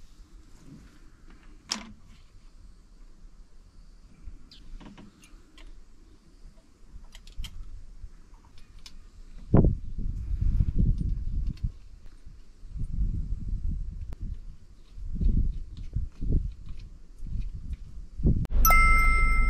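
Metal tools clink and knock against an engine.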